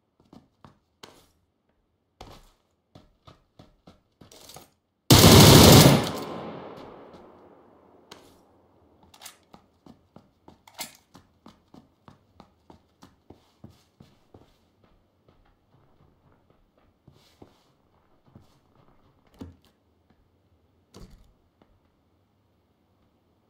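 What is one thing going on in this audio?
Footsteps thud steadily on wooden floors and stairs.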